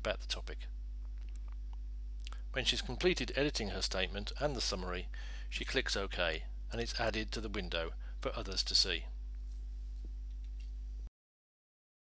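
Keys click as someone types on a keyboard.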